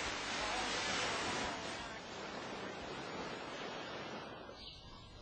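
Waves crash and surge against rocks.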